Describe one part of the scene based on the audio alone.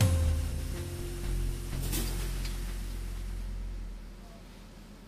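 A large printing press rumbles with a low steady hum.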